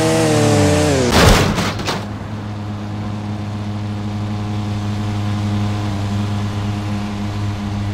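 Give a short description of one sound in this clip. A motorbike engine revs and then hums steadily.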